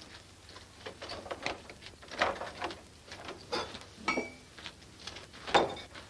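A fist knocks on a wooden door.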